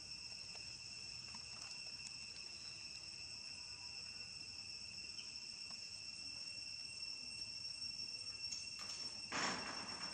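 A small monkey chews and nibbles on grapes.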